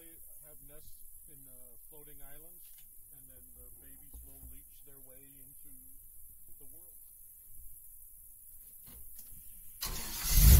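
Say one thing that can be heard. A man speaks calmly and faintly.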